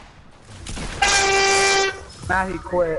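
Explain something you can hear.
A short victory jingle plays in a video game.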